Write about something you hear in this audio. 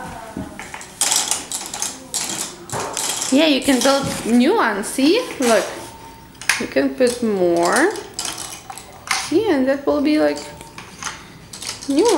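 Plastic toy gears click against a metal board.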